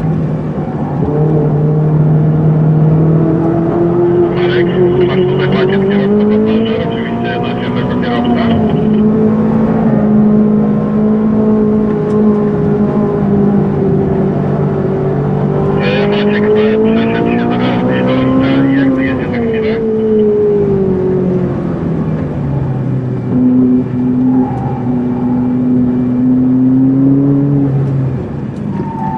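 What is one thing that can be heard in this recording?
A powerful car engine roars loudly from inside the car, rising and falling in pitch as it revs.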